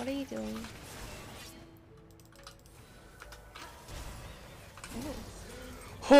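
Spell and sword sound effects whoosh and clash during a fight.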